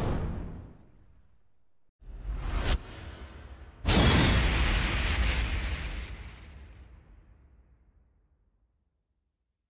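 A fiery blast roars with a deep rumbling boom and slowly fades.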